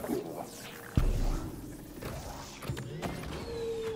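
A machine whirs and crackles with sparks.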